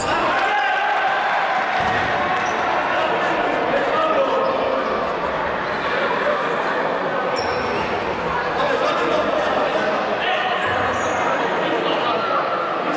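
A crowd of spectators chatters and calls out loudly in an echoing indoor hall.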